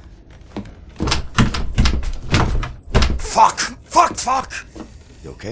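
A man grunts and curses loudly in frustration.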